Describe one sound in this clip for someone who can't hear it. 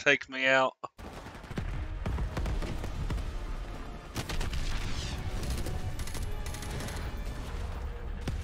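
Low battle noise rumbles steadily.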